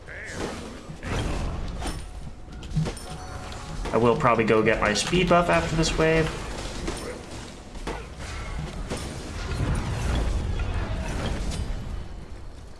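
Magic spells whoosh and blast in a fight.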